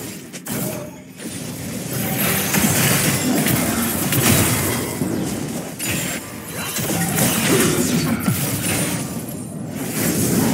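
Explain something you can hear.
Magic spells whoosh and crackle during a fast video game fight.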